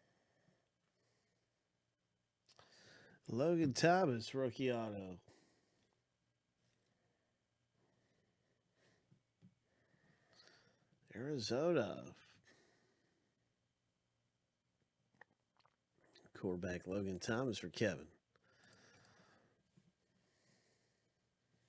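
Cards slide and rustle softly between fingers.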